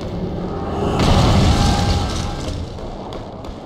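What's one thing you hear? A magical energy burst whooshes and crackles.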